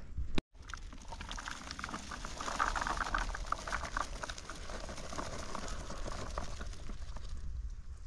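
Berries patter and rattle into a plastic bucket.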